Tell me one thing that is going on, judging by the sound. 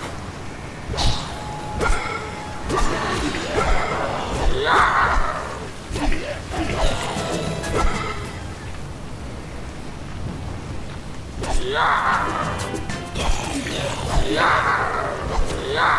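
Zombies groan and growl close by.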